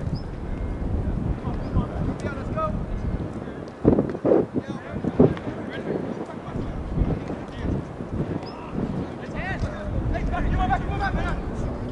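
Young players shout and call to one another in the distance across an open field.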